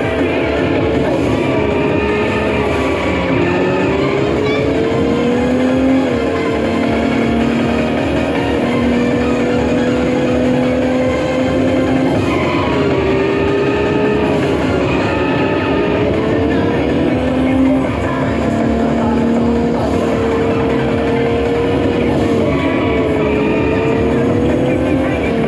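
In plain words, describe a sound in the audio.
Tyres squeal through a racing game's speakers on corners.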